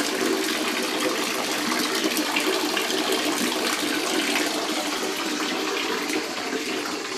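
Water trickles and splashes from spouts.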